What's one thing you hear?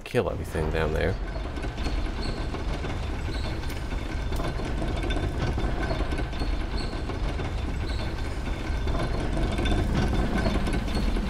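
A heavy wooden lift rumbles steadily as it moves.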